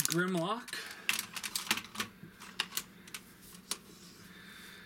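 Plastic toy parts click and clack as they are handled.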